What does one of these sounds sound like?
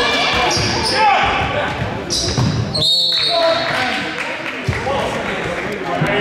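Spectators and players chatter and call out in a large echoing hall.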